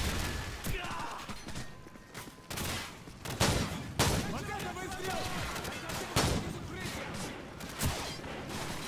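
A shotgun fires loud single blasts.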